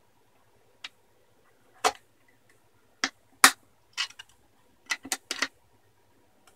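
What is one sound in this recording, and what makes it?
A pry tool clicks and snaps against a plastic case.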